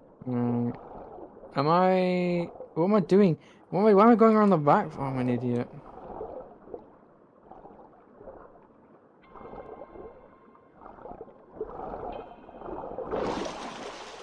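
Water bubbles and churns underwater.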